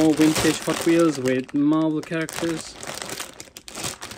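A plastic bag crinkles and rustles in a man's hands.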